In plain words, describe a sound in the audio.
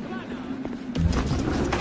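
A body thuds onto wooden steps.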